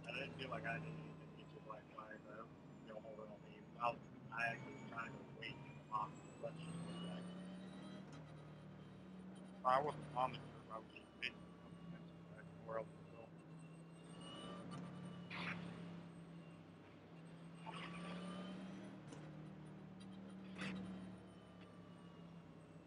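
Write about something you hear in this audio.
A race car engine drones steadily at low speed.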